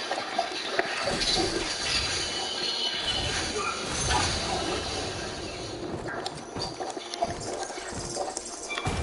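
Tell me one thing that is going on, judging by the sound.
Heavy booming game effects rumble.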